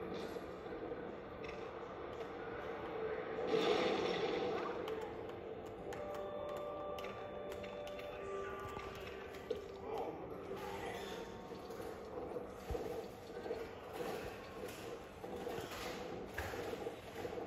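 Video game music and sound effects play from a television speaker.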